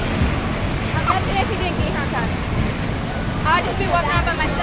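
Young girls talk and laugh close by.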